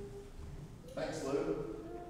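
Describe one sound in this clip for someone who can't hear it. A man speaks into a microphone, heard through loudspeakers in an echoing room.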